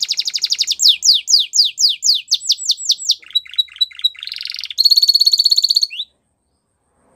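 A canary sings close by in rapid trills and sweeping chirps.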